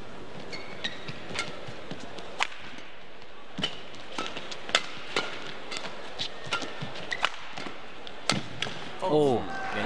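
Sneakers squeak on a court floor.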